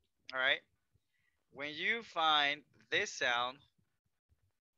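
A man speaks clearly and slowly through an online call, pronouncing single words.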